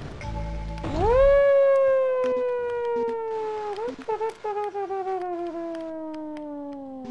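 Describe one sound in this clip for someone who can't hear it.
A man sings a long, slowly falling note close to a microphone.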